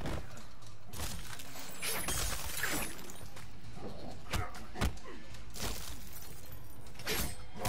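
Ice crackles and shatters.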